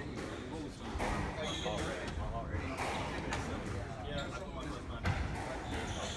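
A squash ball smacks off rackets and walls with sharp echoing thwacks.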